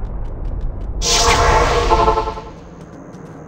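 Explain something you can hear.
A magic portal opens with a loud, shimmering whoosh.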